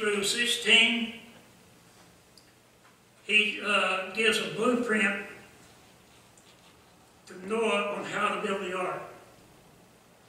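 An elderly man speaks slowly and calmly through a microphone, with pauses.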